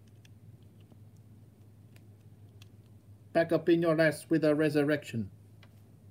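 Small plastic parts click as a toy figure is pressed onto a stand.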